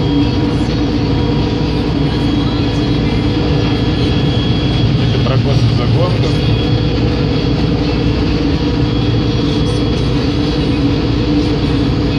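A harvester's engine drones loudly and steadily from close by.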